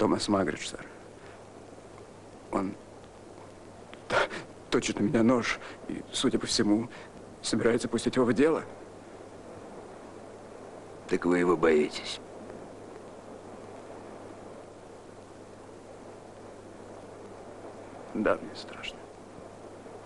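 A man speaks quietly and tensely up close, with long pauses.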